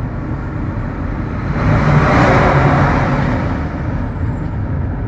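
A large truck passes close by with a loud rushing whoosh.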